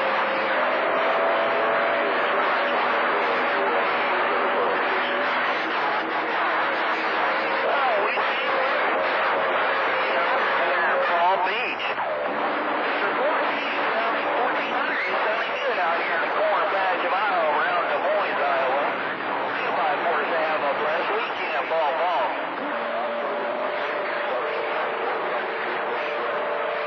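Warbling whistles rise and fall through the radio static.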